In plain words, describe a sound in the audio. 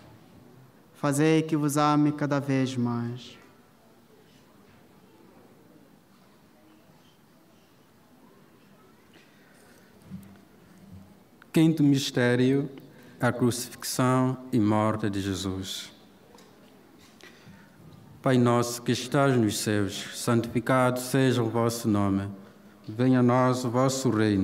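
A man chants and speaks into a microphone through loudspeakers, in a large echoing space.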